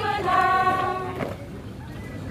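A young woman shouts drill commands outdoors.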